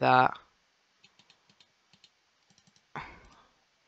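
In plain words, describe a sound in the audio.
Soft clicks come quickly one after another as items are placed.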